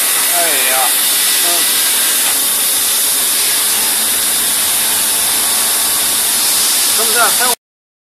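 Coolant hisses as it sprays onto the metal.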